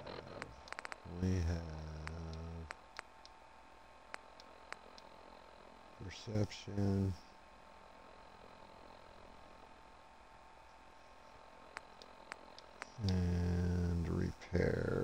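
Soft electronic clicks tick as a menu list scrolls.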